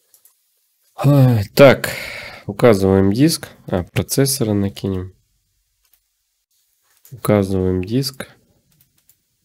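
A man speaks calmly and close into a microphone, in short bursts.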